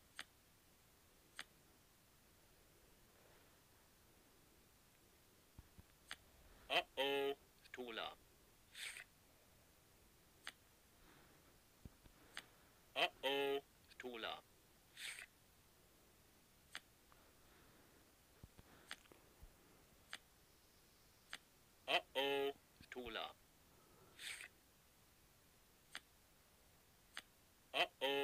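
Playing cards flick and slap down in quick, soft clicks.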